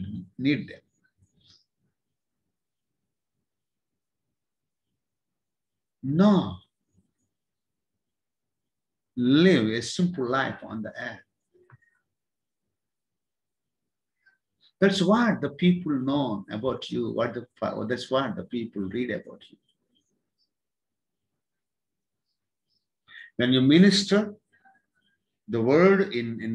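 A middle-aged man speaks calmly close to the microphone, in short bursts with pauses.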